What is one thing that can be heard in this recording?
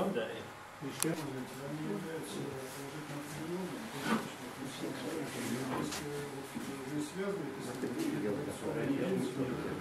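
A middle-aged man speaks calmly at length.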